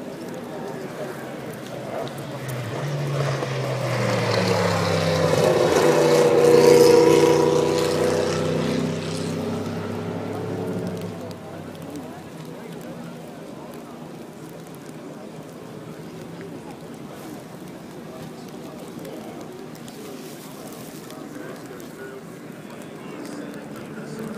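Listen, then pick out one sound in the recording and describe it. Rain patters steadily on umbrellas.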